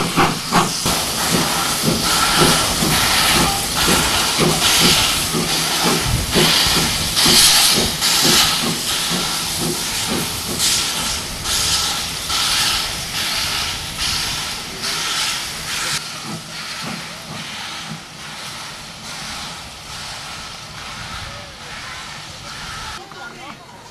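A steam locomotive chuffs hard in rhythmic puffs and slowly fades into the distance.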